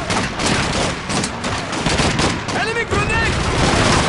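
A submachine gun fires a short burst close by.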